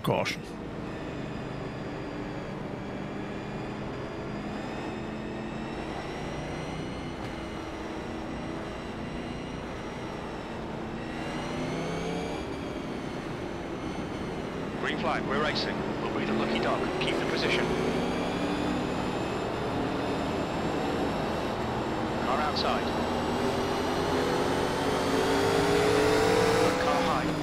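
Other race cars roar close by.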